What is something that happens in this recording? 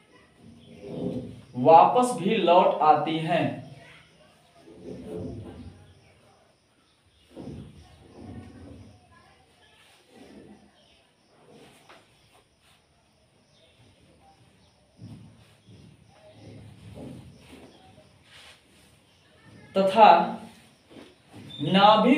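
A man speaks calmly and close by, pausing often.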